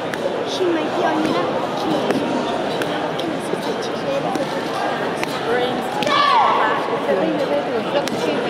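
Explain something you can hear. Bare feet thud and slap on a hard floor.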